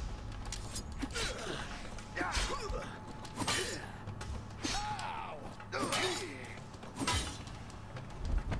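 Swords clash with sharp metallic rings.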